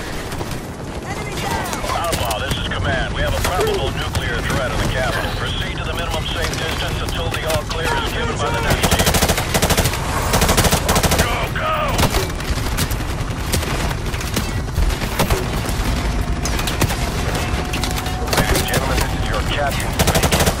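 A helicopter engine roars steadily with thudding rotor blades.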